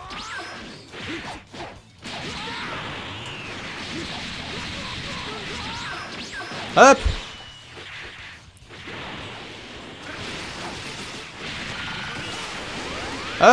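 Punches and blows land in quick bursts of a fight.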